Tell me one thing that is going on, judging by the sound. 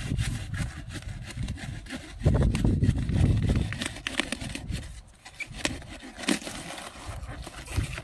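Cabbage leaves rustle and squeak as hands twist a cabbage head.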